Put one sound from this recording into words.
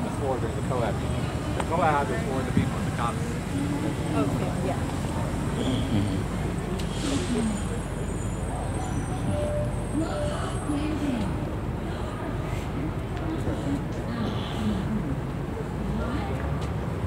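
Traffic rumbles past on a nearby street.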